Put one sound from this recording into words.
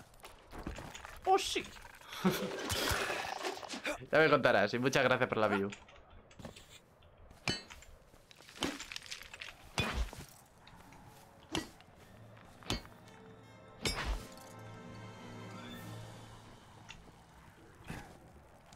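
Weapon hits land with sharp thuds.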